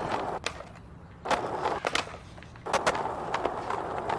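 A skateboard clatters as it lands.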